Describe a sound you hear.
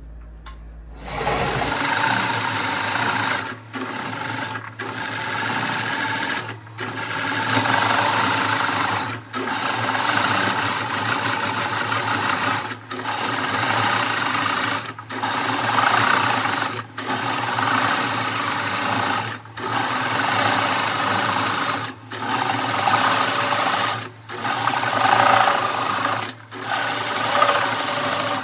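A lathe spins a wooden disc with a steady hum.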